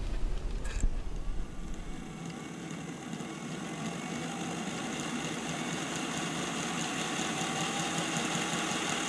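A small electric motor whirs steadily on a model train.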